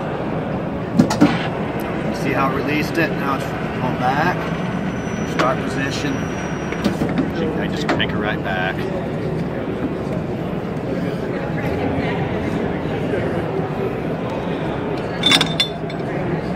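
A manual pipe bender clunks and clanks as metal tubing is bent.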